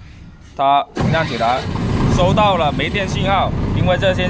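A diesel generator engine cranks and starts.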